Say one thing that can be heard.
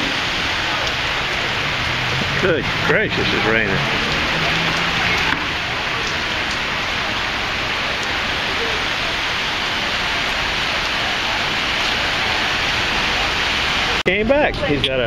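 Heavy rain splashes steadily on hard pavement.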